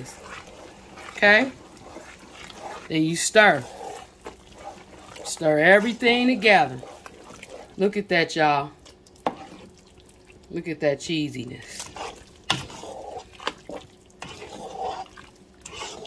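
A spoon stirs thick, sticky food in a pot with soft squelching.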